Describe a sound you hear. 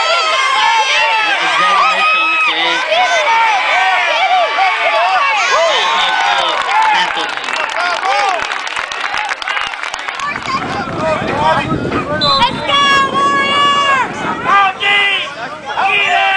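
A crowd of adults and children shouts and cheers outdoors.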